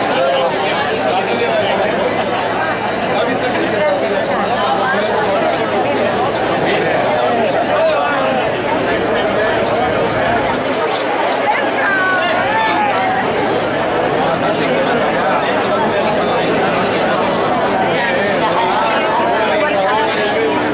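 A large outdoor crowd of men and women chatters and calls out all around.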